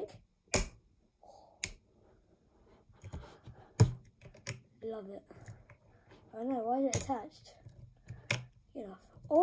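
A plastic bottle cap clicks and rattles under fingers.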